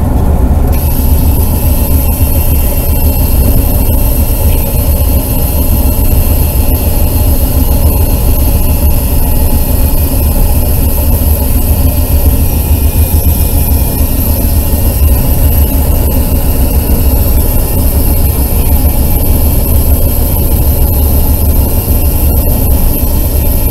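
Wind roars loudly and steadily while moving at speed.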